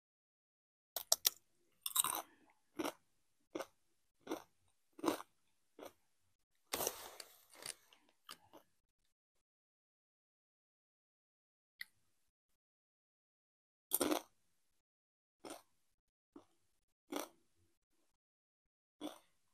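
A young woman crunches a crispy snack close to a microphone.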